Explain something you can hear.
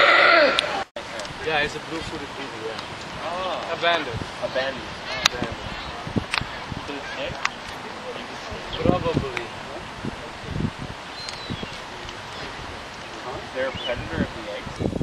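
Albatrosses clack their beaks together rapidly.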